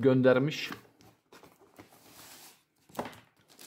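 A cardboard box rustles as it is moved.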